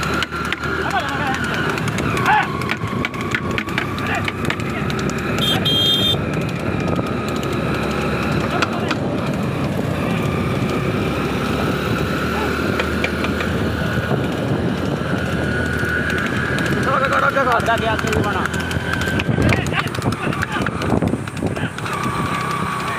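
Cart wheels rumble over a paved road.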